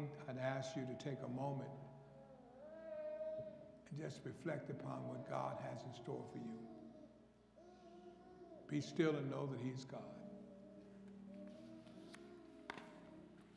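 An elderly man speaks with feeling into a microphone in a large echoing hall.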